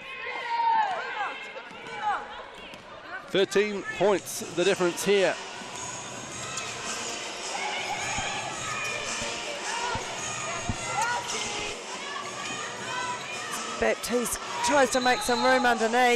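Sneakers squeak sharply on a hardwood court in a large echoing hall.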